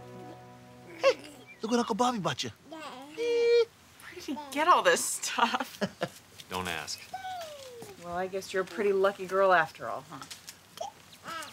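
A baby coos and babbles happily.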